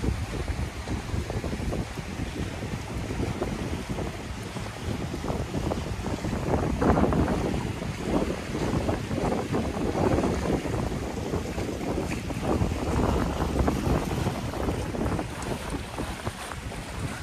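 Choppy water laps and splashes below.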